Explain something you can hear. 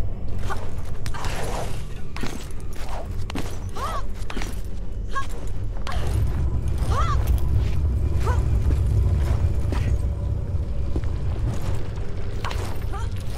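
Hands grab and scrape on stone ledges.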